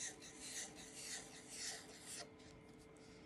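A marker pen scratches and squeaks across paper in short strokes.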